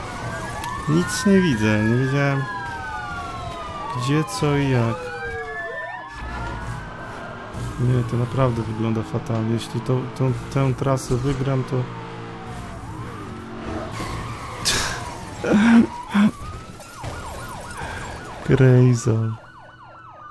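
A car crashes with crunching metal and shattering glass.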